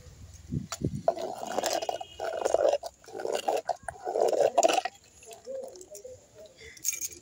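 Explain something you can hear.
A metal ladle scrapes and clinks against a clay pot while stirring.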